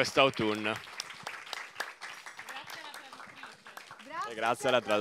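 People clap their hands and applaud.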